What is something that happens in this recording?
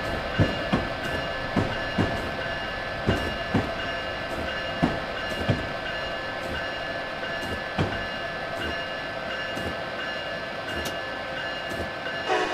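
An electric train's motor hums steadily.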